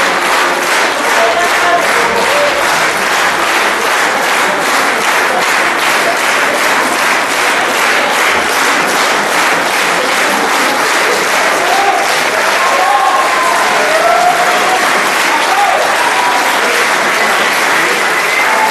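An audience applauds loudly and steadily in a large hall.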